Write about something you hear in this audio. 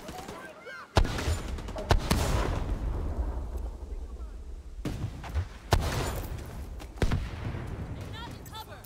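A gun fires a few loud shots that boom and rumble away.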